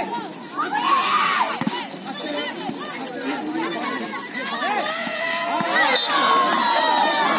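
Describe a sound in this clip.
Many young women shout and cheer loudly outdoors.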